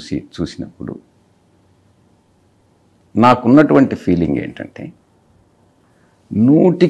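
An elderly man speaks calmly and close into a microphone, with pauses.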